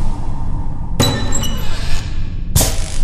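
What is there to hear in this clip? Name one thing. A heavy metal switch clanks into place.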